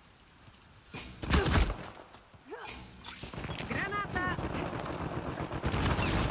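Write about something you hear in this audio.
Gunshots fire in rapid bursts, close by.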